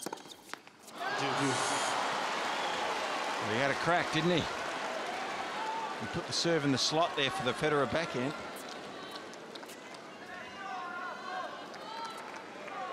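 A large crowd cheers and applauds loudly in a big arena.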